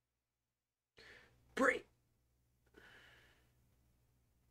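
A middle-aged man exclaims briefly in surprise, close to a microphone.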